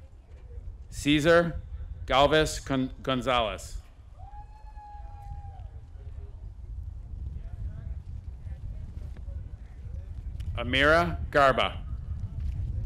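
A man reads out names over a loudspeaker in a large open space.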